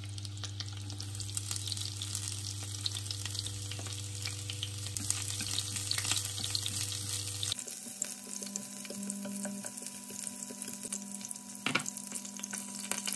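Cabbage sizzles and crackles in hot oil in a pan.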